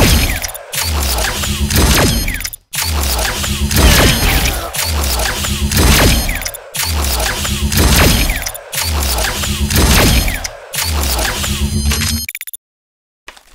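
Electric sparks crackle and pop on impact.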